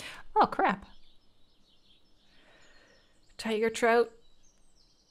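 A young woman speaks close to a microphone, in short animated bursts.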